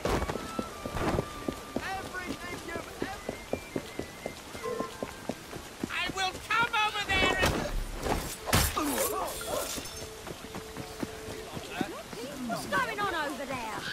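Footsteps thud quickly on the ground.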